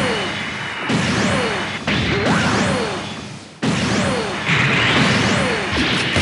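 Beam weapons fire with sharp, crackling blasts.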